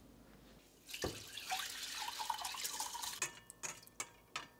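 Batter pours and splatters into a pot.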